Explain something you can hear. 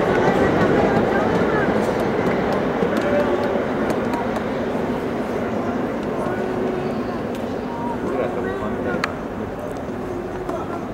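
A large crowd murmurs and chatters across an open stadium.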